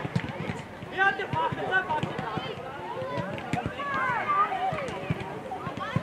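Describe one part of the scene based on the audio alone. Children shout and call out across an open field.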